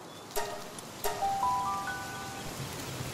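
Soft chime tones rise one after another.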